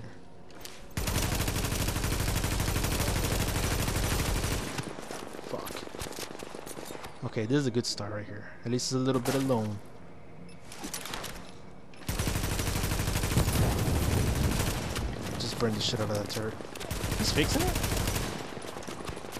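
Automatic gunfire rattles in long rapid bursts.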